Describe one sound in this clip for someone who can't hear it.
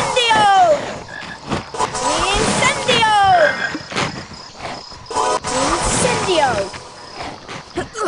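A magic spell crackles and whooshes with rising and falling whistles.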